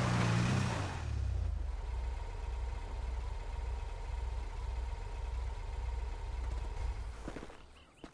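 A buggy engine idles with a low, pulsing rumble.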